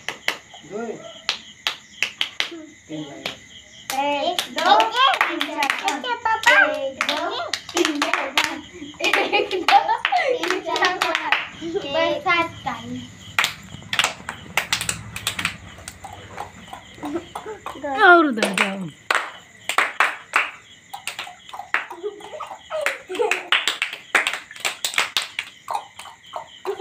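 Children sing together loudly and with excitement.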